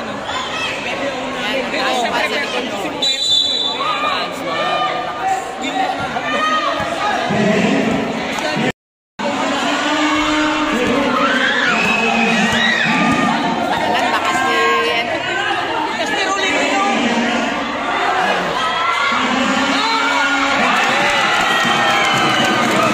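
A crowd chatters and cheers loudly in a large echoing hall.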